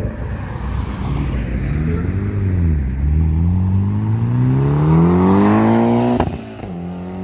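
A car accelerates hard, its engine revving higher and higher before suddenly cutting off.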